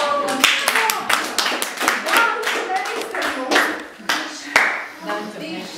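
A man claps his hands in quick rhythm.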